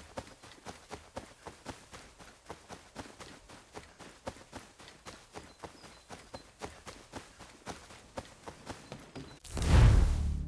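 Quick footsteps run through dry grass.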